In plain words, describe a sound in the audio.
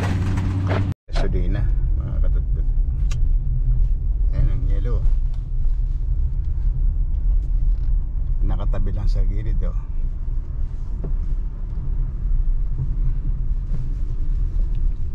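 A car engine rumbles steadily, heard from inside the car.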